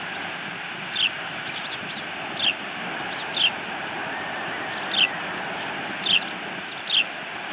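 An osprey gives short, sharp, high chirps, several times in a row.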